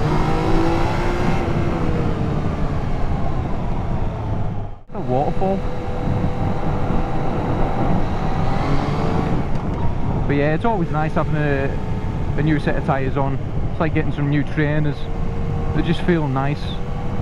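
A motorcycle engine drones steadily while riding.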